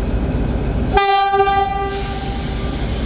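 A locomotive horn sounds briefly.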